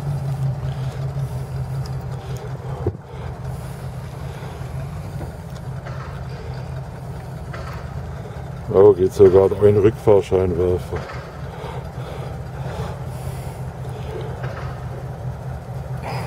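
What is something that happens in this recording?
A car engine idles with a steady low rumble.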